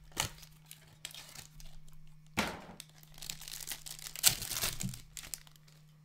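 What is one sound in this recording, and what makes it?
A foil card pack crinkles and tears open.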